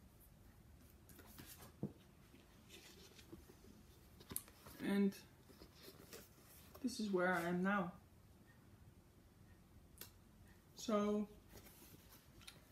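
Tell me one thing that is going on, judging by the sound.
Stiff fabric rustles as it is handled.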